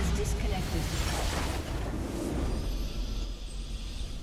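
A loud crystalline explosion bursts and rumbles.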